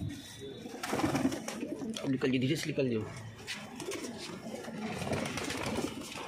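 Pigeons flap their wings in sudden bursts.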